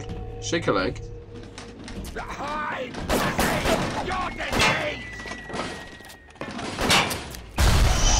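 A pistol fires several sharp shots in a large echoing hall.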